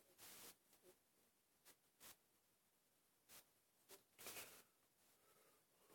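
An elderly man speaks softly and slowly, close by.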